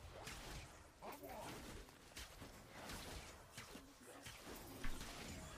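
Game spells and hits whoosh and crack in quick bursts.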